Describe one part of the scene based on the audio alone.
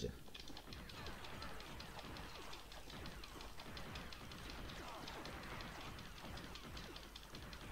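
Game laser blasters fire in rapid bursts.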